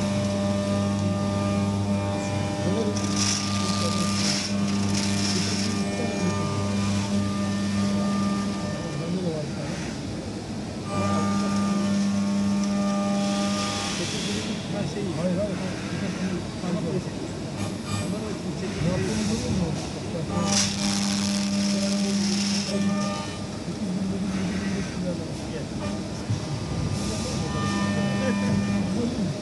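Coolant sprays and splashes against metal.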